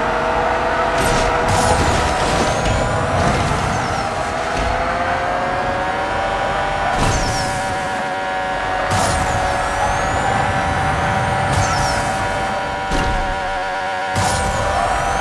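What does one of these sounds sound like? Whooshing bursts sound as a car boosts.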